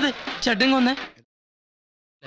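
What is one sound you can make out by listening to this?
Men speak with animation.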